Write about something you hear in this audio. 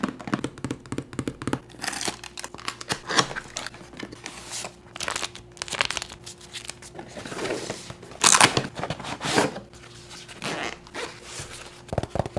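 Cardboard packaging rustles and scrapes as hands open a box.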